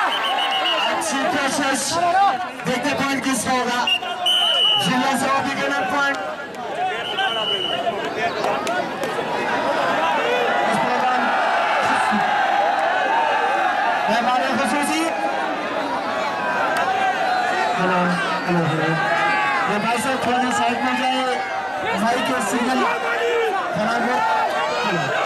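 Men nearby shout and call out loudly.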